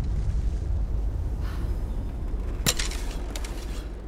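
A bowstring creaks as a bow is drawn.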